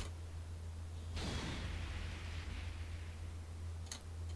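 A fiery whoosh surges and fades.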